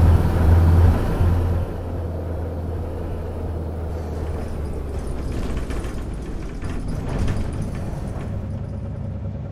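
A bus engine hums and rumbles while driving.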